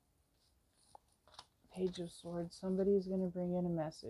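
Playing cards slide and tap softly on a wooden table.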